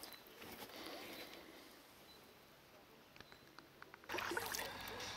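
Water laps gently against a floating tube.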